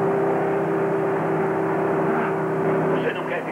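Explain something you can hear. A young boy cries out in alarm.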